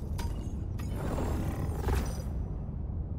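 A game menu gives a soft whoosh as it opens.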